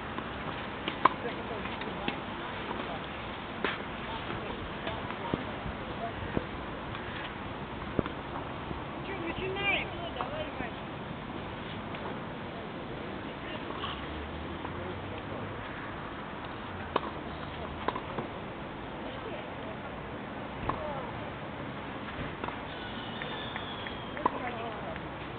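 Tennis balls are struck with rackets.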